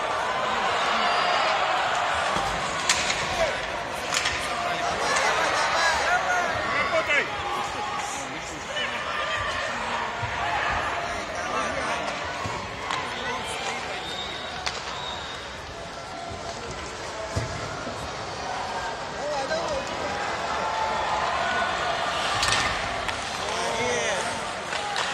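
A crowd of spectators murmurs and chatters throughout a large echoing arena.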